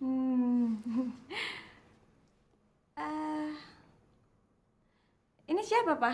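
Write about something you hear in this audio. A young woman speaks playfully close by.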